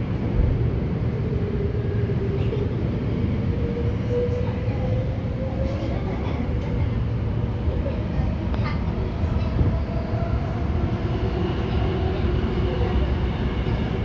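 Wheels squeal faintly against the rails.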